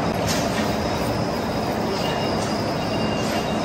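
A stiff brush sweeps metal chips off a turning workpiece.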